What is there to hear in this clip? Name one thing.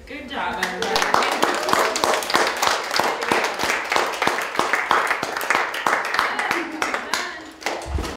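A group of people applauds in a room.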